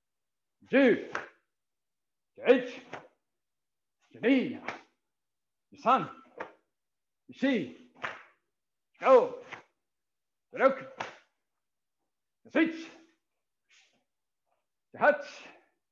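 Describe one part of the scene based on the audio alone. A man shouts short, sharp counts at a steady pace, heard through a microphone.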